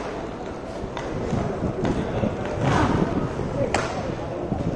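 A hockey stick clacks sharply against a ball.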